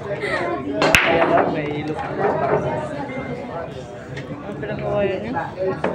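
Billiard balls click against each other as they roll.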